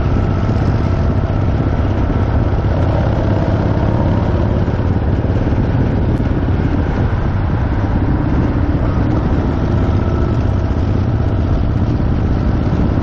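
Wind buffets loudly against the rider.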